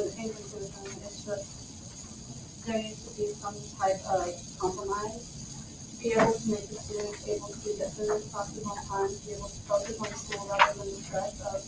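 A woman speaks steadily at a distance in a room with some echo.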